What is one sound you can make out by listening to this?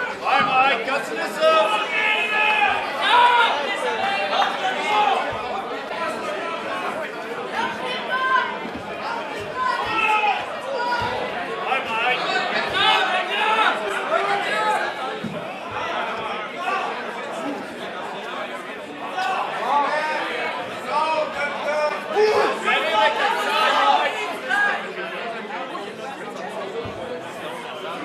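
Men shout instructions loudly nearby.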